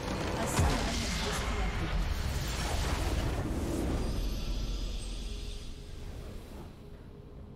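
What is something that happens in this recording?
A big explosion rumbles as a tower crumbles.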